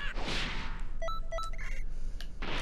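Short electronic beeps chime as a menu is stepped through.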